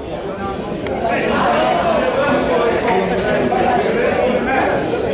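Several men talk loudly and excitedly nearby.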